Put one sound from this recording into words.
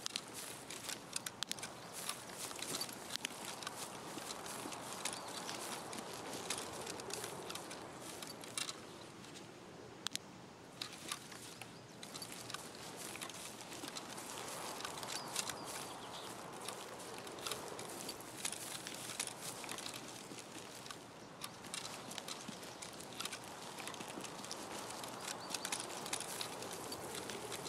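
Footsteps swish and rustle through tall grass.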